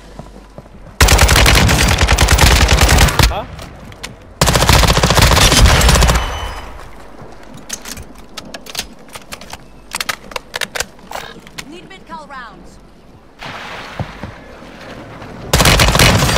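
A rifle fires in long rapid bursts.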